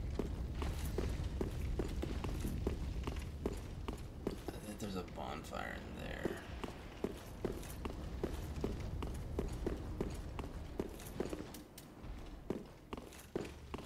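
Armoured footsteps clank on stone.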